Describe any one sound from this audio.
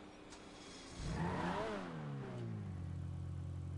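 A sports car engine revs up.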